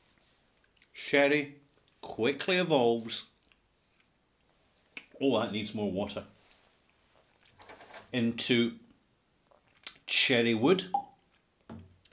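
A middle-aged man talks calmly and closely, pausing between phrases.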